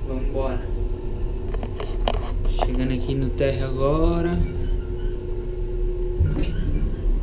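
An elevator hums steadily while moving.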